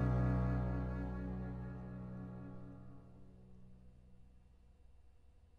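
Several double basses hold a low chord that rings out and slowly fades in a large echoing hall.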